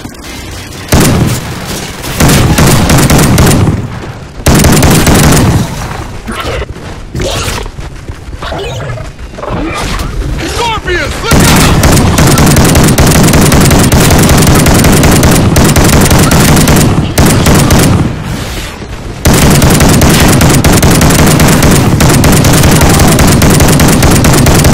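Shotgun blasts boom in quick bursts.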